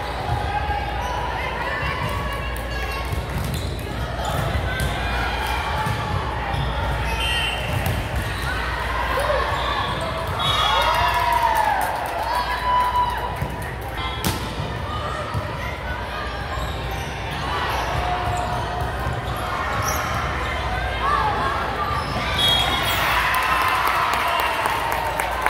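Young women's voices chatter and call out across a large echoing gym.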